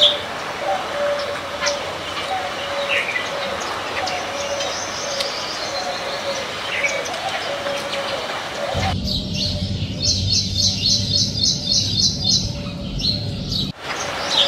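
Small birds chirp and twitter close by.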